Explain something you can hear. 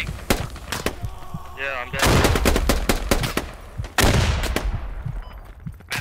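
A rifle fires sharp, loud shots that ring out.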